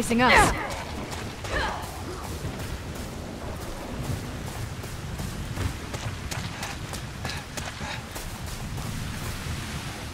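Footsteps run over wet ground.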